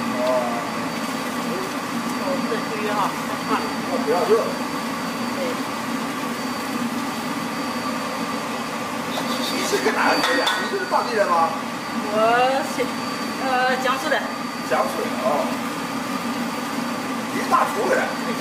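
Food pieces splash and crackle as they drop into hot oil.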